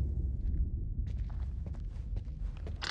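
Boots step slowly on a stone floor.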